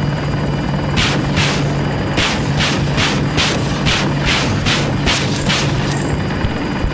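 Rockets fire in a quick series of whooshing bursts.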